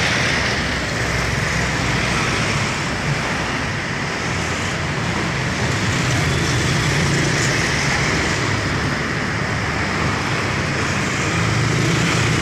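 Cars and a minibus drive past close by.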